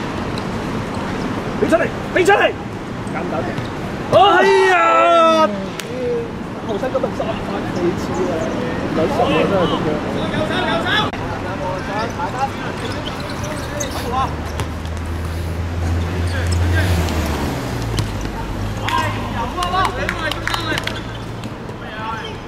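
Young men shout to each other across an outdoor pitch.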